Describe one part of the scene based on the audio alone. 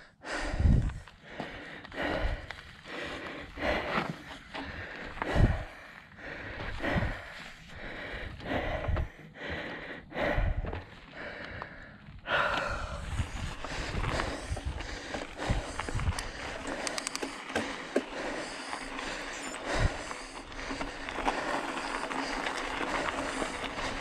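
Bicycle tyres crunch over loose gravel and dirt.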